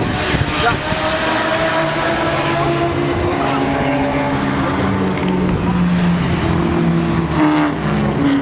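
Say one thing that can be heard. Racing car engines roar loudly as they speed past, shifting gears.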